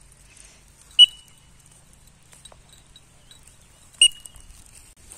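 A bird gives two short, sharp cries close by.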